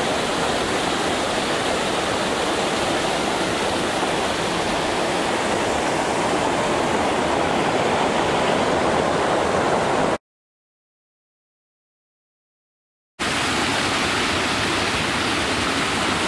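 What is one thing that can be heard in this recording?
A shallow river rushes loudly over rocks and a weir.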